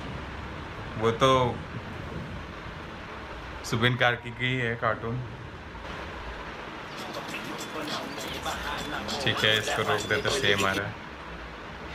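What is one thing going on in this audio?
A young man speaks and laughs softly close by.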